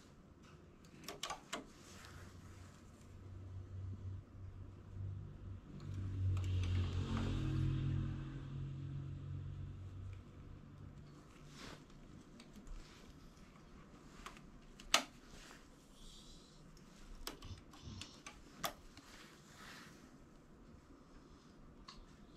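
Metal needles click and tick as hands work a knitting machine.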